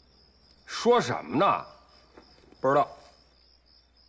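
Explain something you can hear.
A middle-aged man speaks quietly and hesitantly, close by.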